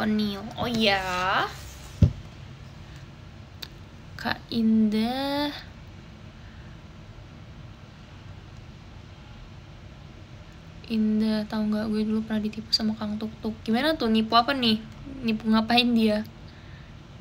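A young woman speaks softly and close by.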